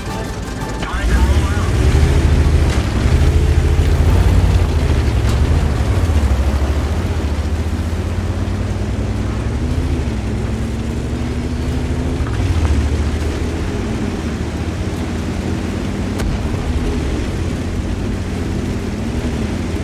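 A tank engine roars and revs up and down.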